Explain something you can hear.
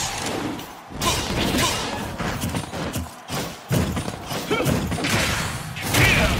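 Video game punches and kicks land with sharp thuds and cracks.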